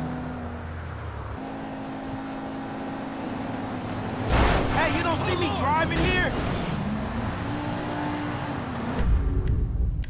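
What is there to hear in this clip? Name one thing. A car engine roars as cars speed along a road.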